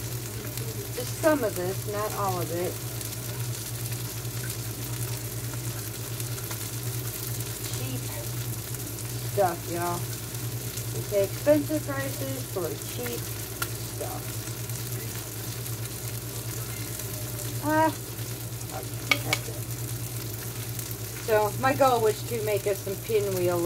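Food sizzles softly in a frying pan.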